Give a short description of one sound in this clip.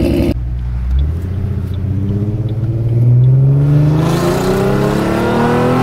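A car engine revs up, rising in pitch.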